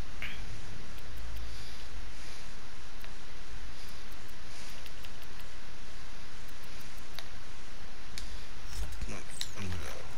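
Menu selection clicks tick quickly one after another.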